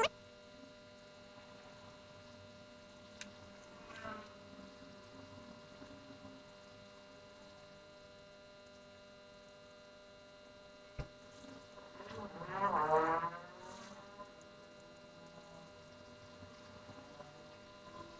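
A small brush scrubs lightly across a circuit board.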